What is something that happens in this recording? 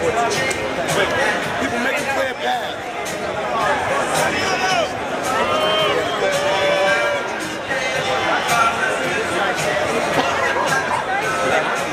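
A crowd of men and women chatter all around, close by, outdoors.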